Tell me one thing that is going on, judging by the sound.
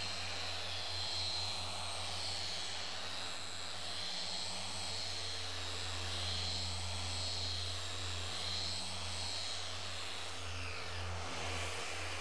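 A power polisher whirs steadily, then winds down.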